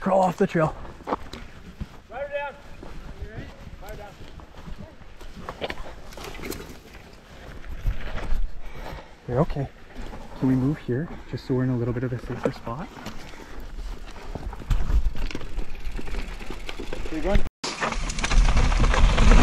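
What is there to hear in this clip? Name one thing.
Bike tyres rumble over a dirt trail.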